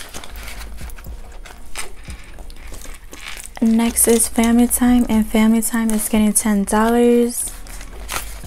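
A plastic pouch crinkles and rustles as it is handled.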